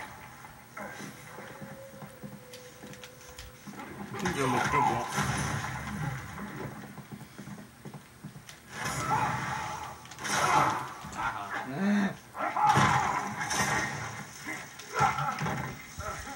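Fighting game sounds play from a television.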